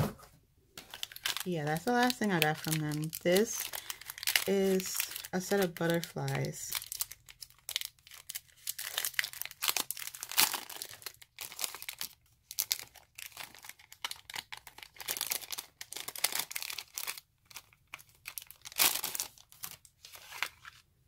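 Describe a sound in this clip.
Plastic packaging crinkles and rustles as hands handle it up close.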